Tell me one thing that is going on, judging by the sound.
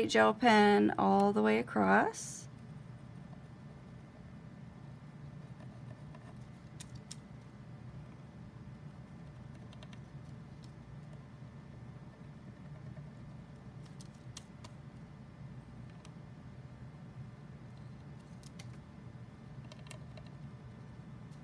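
A marker pen scratches softly across card.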